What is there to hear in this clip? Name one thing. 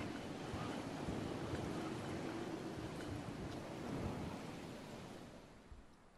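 Wind rushes steadily, fading toward the end.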